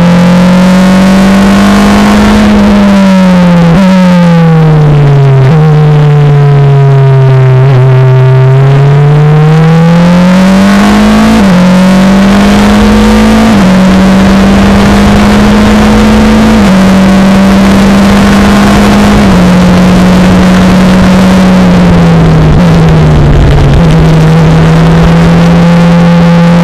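A Formula Renault single-seater's four-cylinder engine screams at high revs on track.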